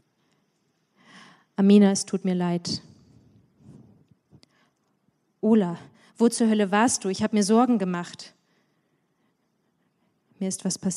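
A young woman reads aloud calmly into a microphone, with pauses.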